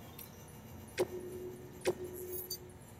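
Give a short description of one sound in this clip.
Short electronic menu beeps sound.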